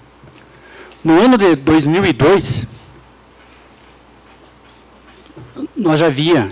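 A man speaks into a microphone in a calm, measured voice.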